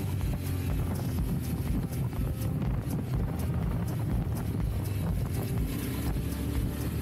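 Tyres crunch over a rocky dirt track.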